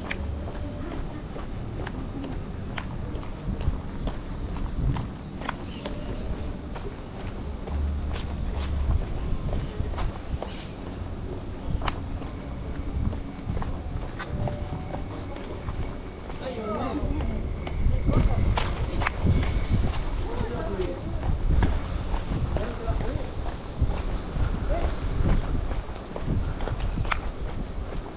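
Footsteps tap steadily on cobblestones.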